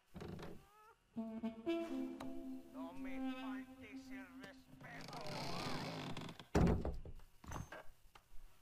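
Boots thud slowly on a wooden floor.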